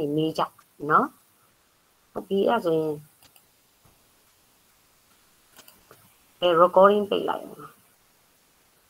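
A middle-aged woman speaks calmly in short phrases over an online call.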